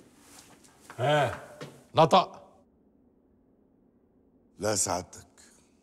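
A man speaks tensely and loudly nearby.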